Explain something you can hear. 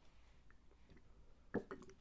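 A young woman sips a drink from a cup.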